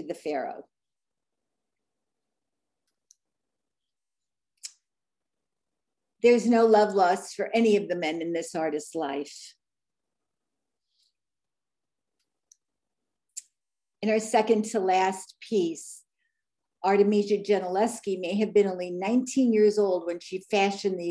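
A woman speaks calmly through a microphone on an online call, with pauses.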